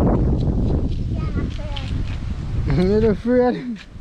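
A young boy calls out loudly nearby.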